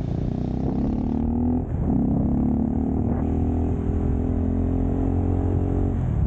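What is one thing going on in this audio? A bus engine rumbles as it passes close by.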